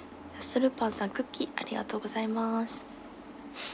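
A young woman speaks brightly and closely into a microphone.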